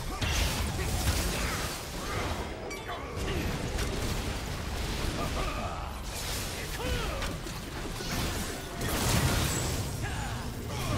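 Magic spells whoosh and crackle in a fast, busy fight.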